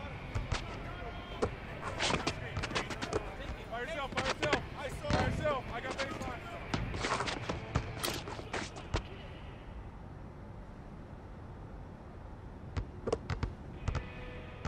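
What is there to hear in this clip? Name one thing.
A basketball bounces on hard pavement.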